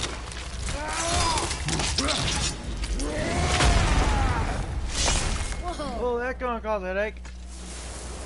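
Heavy blows crash and thud in a fight.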